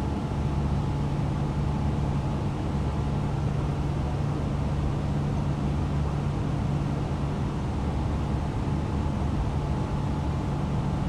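Jet engines drone steadily with a deep, even hum.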